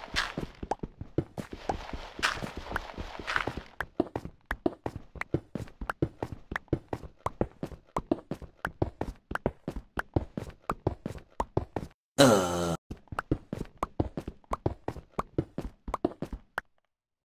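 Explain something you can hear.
Blocks crack and crumble in quick, steady taps as they are dug away.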